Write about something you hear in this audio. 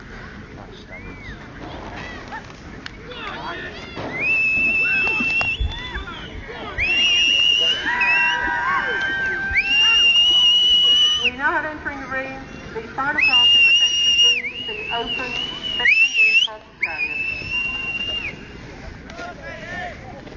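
Horses' hooves thud softly on grass as they trot.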